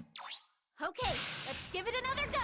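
A robot's jet thrusters roar loudly.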